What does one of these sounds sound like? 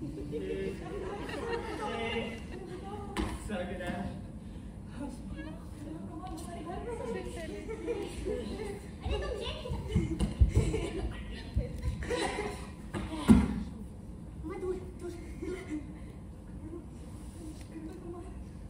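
Women speak and call out with animation in a large echoing hall.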